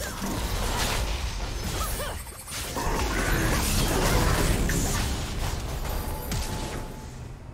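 Magic spells burst and crackle in a fast game battle.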